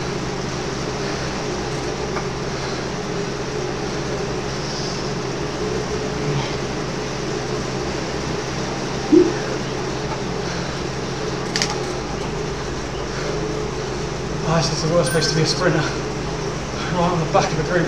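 A trainer hums steadily under pedalling.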